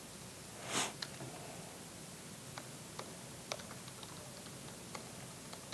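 Keyboard keys click as someone types in short bursts.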